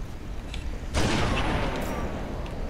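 A sniper rifle fires a loud, booming shot.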